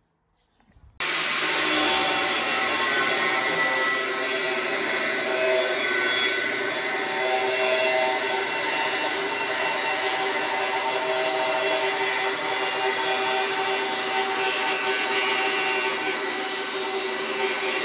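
An angle grinder whines loudly as it cuts into steel.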